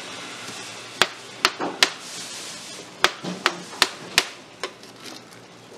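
A knife cuts through soft fruit and taps on the counter.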